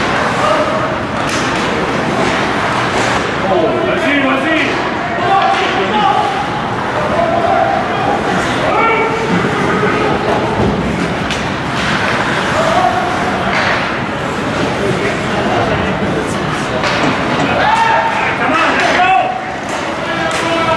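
A crowd murmurs and calls out in an echoing arena.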